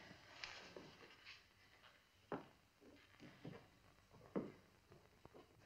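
Footsteps sound on a wooden floor as a woman walks away.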